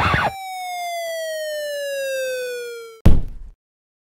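A whistle slowly drops in pitch as something falls.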